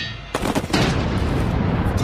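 A fireball bursts with a roar.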